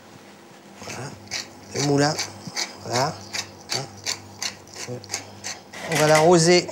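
A pepper mill grinds with quick clicks.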